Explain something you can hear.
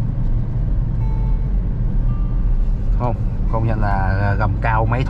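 A car engine hums steadily with road rumble from inside the cabin.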